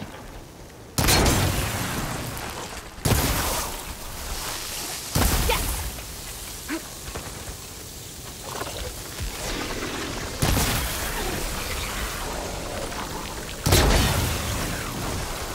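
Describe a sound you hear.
Explosions boom in loud sudden bursts.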